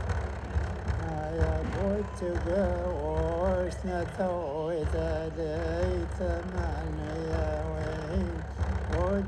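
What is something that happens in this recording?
An elderly man chants in a wavering voice close to a microphone.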